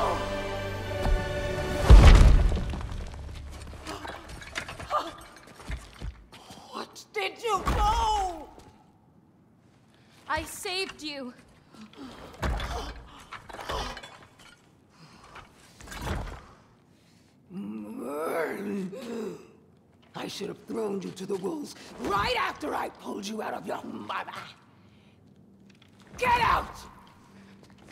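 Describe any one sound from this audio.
A man shouts in anguish.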